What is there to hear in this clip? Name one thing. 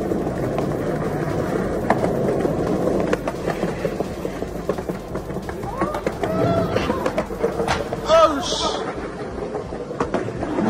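Small wheels rumble steadily as they roll over a pavement.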